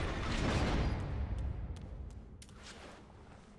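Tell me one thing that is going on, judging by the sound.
Footsteps clank on stone.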